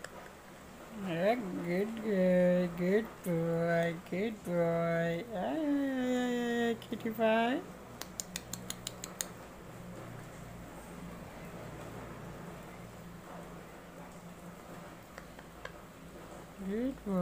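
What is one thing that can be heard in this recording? A parrot squawks and chatters close by.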